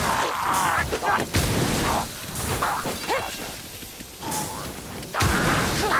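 Guns fire in loud, quick bursts.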